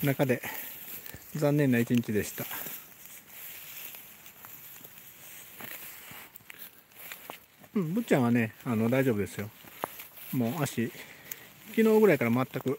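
A dog pads through grass.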